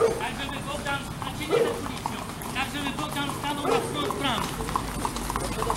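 Horses' hooves clop on a wet paved road.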